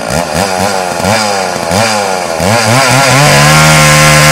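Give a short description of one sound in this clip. A chainsaw engine revs up and down.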